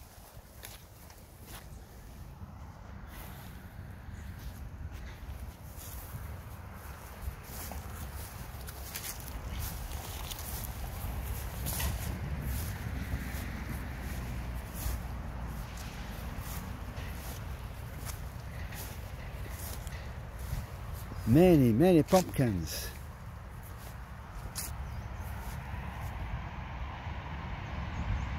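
Wind rumbles across open ground outdoors.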